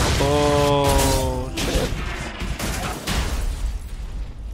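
A car crashes with a loud crunching impact.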